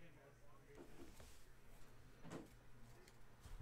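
A foil pack wrapper crinkles as it is torn open.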